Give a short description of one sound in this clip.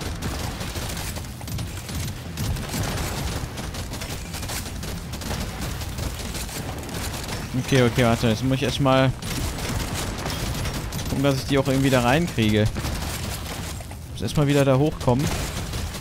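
Rapid gunfire crackles and pops amid a busy battle.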